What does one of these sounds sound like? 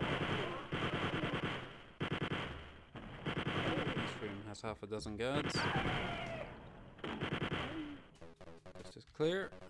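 A chain gun fires rapid bursts of shots.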